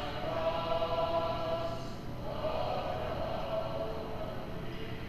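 A man chants slowly through a microphone, heard through a small speaker.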